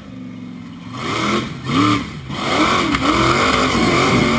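An off-road buggy's engine revs hard as it climbs a dirt slope.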